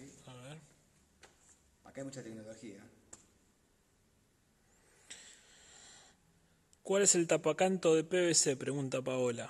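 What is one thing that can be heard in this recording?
A man talks calmly and close by, with pauses, in a large echoing room.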